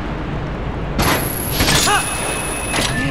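A grappling hook shoots out with a rattling chain.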